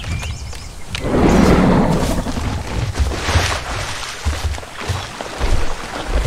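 Water splashes and swishes as a large creature wades and swims.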